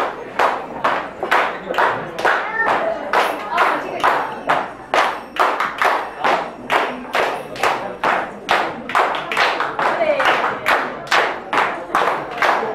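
A group of women clap their hands in a steady, quick rhythm.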